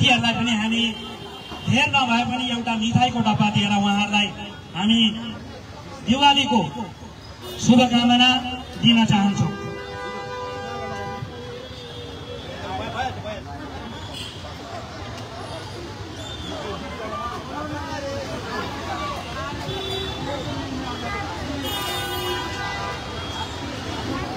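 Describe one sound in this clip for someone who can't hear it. A crowd of people talks quietly in the background.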